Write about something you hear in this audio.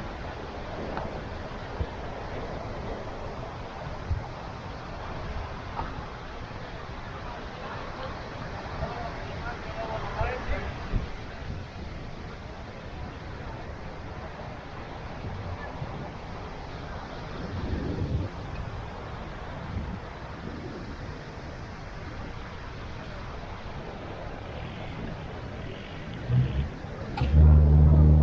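Wind gusts outdoors and rumbles.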